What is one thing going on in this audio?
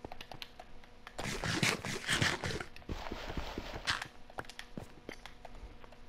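A block of earth is dug out with a soft crunch.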